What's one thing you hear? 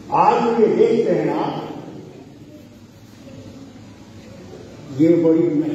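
An elderly man speaks forcefully into a microphone, his voice carrying through a loudspeaker.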